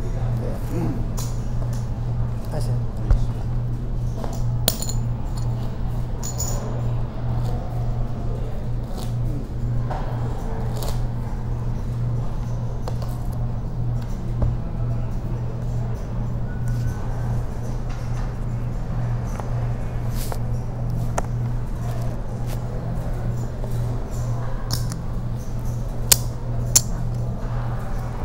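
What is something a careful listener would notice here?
Poker chips click and clatter against each other.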